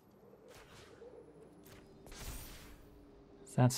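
A soft magical whoosh sweeps past.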